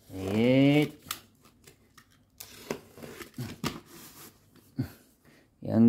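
A box cutter slices through packing tape on a cardboard box.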